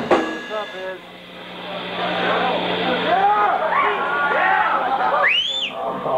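An amplified electric guitar plays bending, wailing notes.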